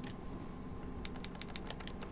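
Short electronic blips sound as a game menu opens and its choices are scrolled through.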